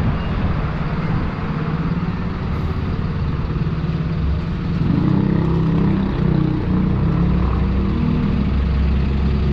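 A double-decker bus engine idles and rumbles nearby.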